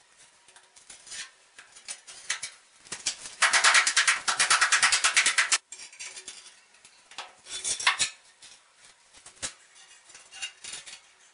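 Hard tiles knock and click as they are pressed into place.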